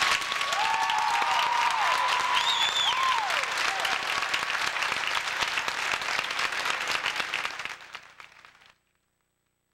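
A large crowd applauds in an echoing hall.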